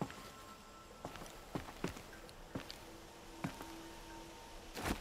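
Hands thud against rock ledges as a climber pulls upward.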